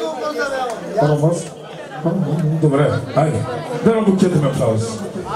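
A man speaks loudly with animation through a microphone and loudspeaker.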